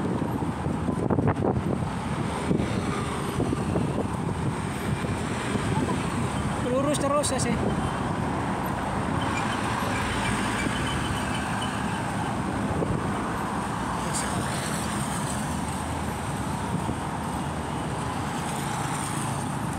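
Traffic hums outdoors.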